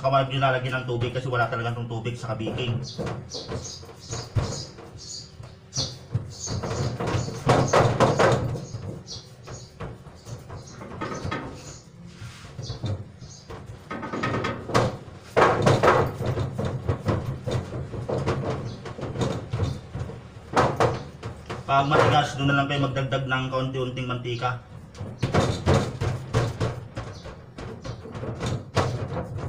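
Hands press and rub a crumbly mixture in a metal tray, making soft scraping and rustling.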